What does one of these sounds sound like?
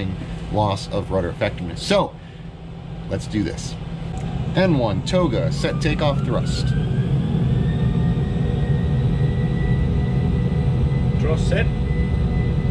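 A young man talks animatedly and close up into a clip-on microphone.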